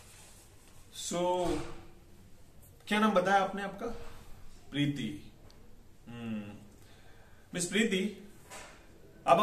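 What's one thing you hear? A man speaks calmly and clearly, close by, in short phrases with pauses.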